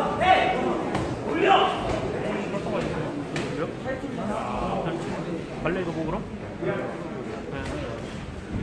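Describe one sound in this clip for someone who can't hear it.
Boxing gloves thud against a body.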